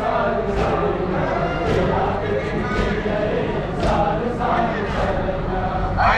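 Men beat their chests in a steady rhythm.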